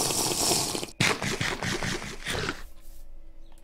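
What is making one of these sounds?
An apple is munched with crunchy bites.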